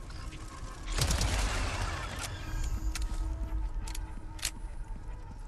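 A large winged creature buzzes and roars loudly.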